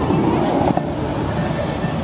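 A skateboard rolls along a street.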